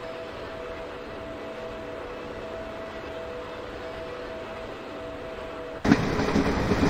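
A train's motor hums steadily as it runs along the track.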